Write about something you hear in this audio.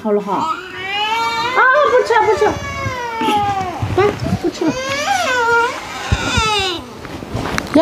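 A little girl wails and cries loudly close by.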